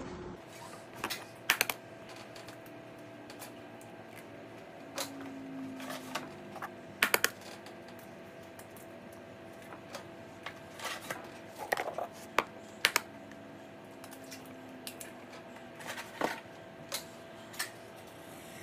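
Hands knock and rustle in a plastic bowl.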